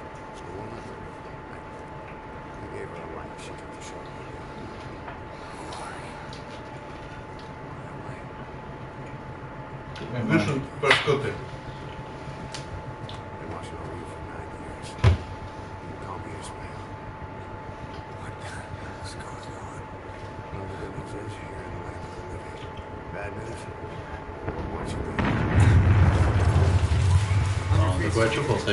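A man speaks in a low, menacing voice.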